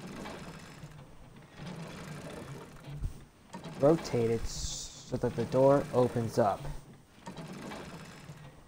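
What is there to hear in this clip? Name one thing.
A metal roller shutter rattles as it rolls up.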